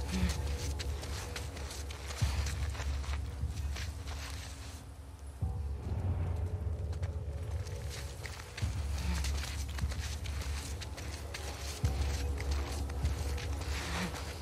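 Tall grass rustles and swishes as someone crawls slowly through it.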